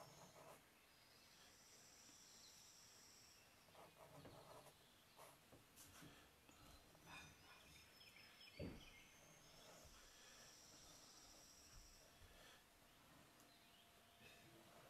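A crowquill pen nib scratches on paper.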